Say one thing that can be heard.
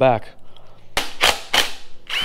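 An impact driver rattles in short bursts.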